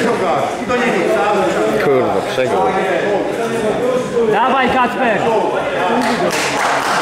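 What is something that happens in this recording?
A man talks loudly nearby in an echoing hall.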